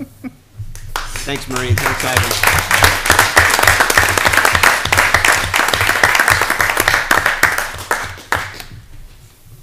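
A small group of people applaud in a room.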